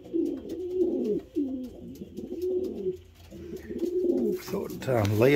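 Pigeons coo softly and steadily close by.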